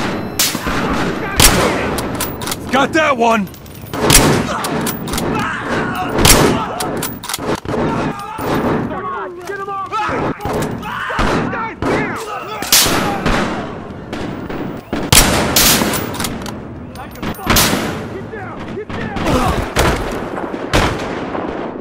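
Gunshots crack sharply, one at a time, in an echoing indoor space.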